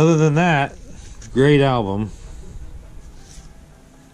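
Paper rustles as record sleeves are flipped by hand.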